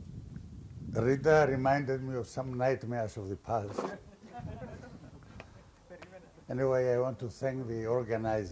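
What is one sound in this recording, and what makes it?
An elderly man speaks through a microphone in a steady voice.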